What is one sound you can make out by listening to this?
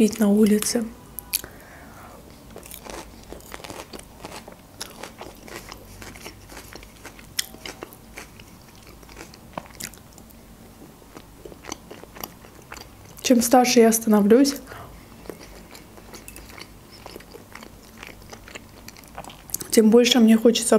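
A young woman chews salad with moist, crunchy sounds close to a microphone.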